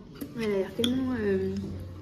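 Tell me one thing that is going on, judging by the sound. A spoon scrapes against a bowl.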